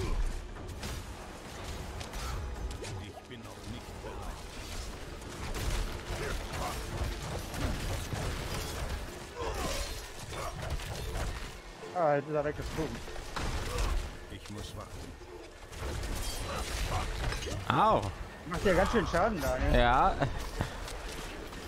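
Magic blasts and blows crash and rumble in a video game battle.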